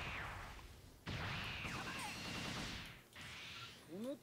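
A game's energy blast whooshes and roars.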